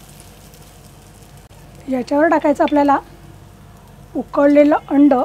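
An omelette sizzles in a frying pan.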